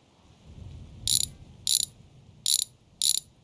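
A wrench whirs in short, sharp bursts.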